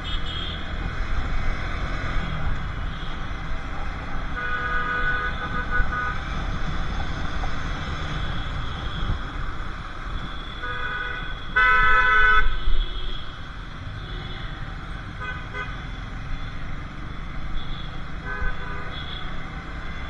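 Motorcycle engines hum steadily in busy traffic.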